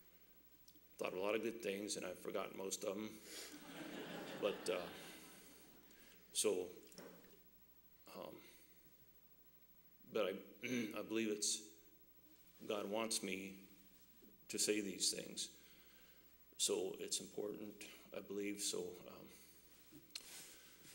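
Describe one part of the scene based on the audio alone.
A man speaks calmly into a microphone in an echoing hall, in short phrases with pauses.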